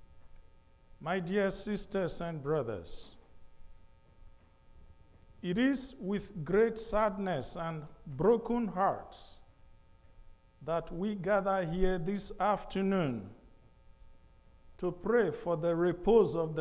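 A man speaks calmly into a microphone, in pauses, in an echoing hall.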